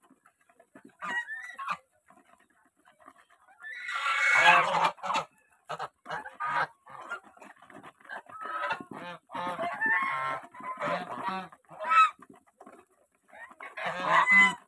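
Geese honk loudly close by.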